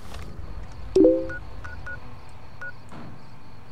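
A small electronic device clicks on and gives a few short beeps.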